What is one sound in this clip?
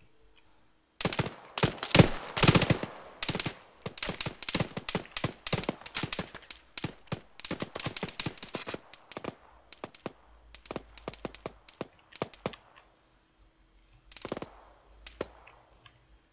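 Gunshots crack in rapid bursts nearby.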